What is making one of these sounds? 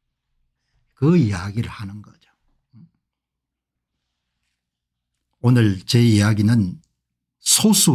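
An older man speaks calmly and closely into a microphone, in short phrases with pauses.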